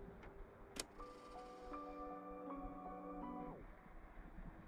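Music with a short instrumental intro plays from a small radio.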